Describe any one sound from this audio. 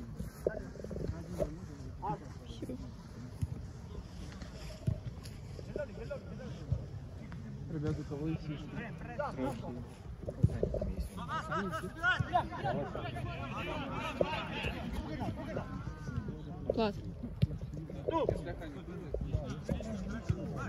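A football is kicked with dull thumps.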